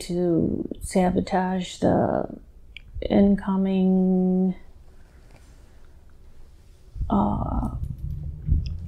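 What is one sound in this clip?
A woman moans and groans in pain, close by.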